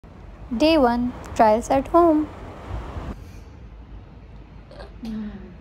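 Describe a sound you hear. A young woman speaks cheerfully and close by.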